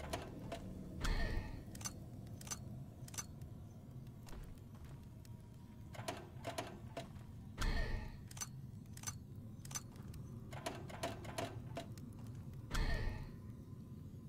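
A stone switch clunks in a wall with a low magical whoosh.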